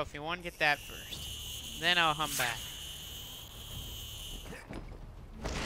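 A zip line whirs steadily as a figure slides along it.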